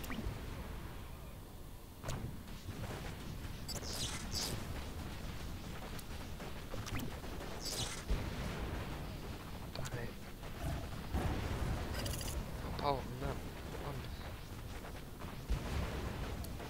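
Explosions boom and crackle again and again.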